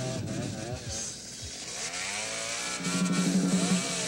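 A chainsaw engine runs and revs.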